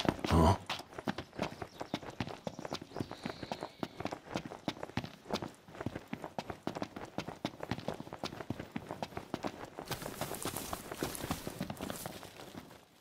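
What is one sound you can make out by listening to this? Footsteps run quickly through dry grass.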